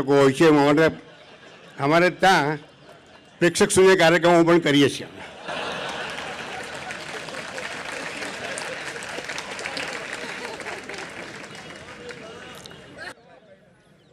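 A large audience laughs loudly.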